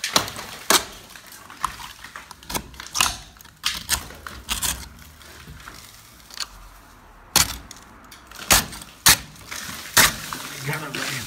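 A blade scrapes and chips at crumbling plaster.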